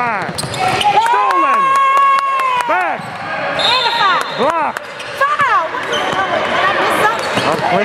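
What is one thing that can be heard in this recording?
Sneakers squeak sharply on a hardwood court in an echoing gym.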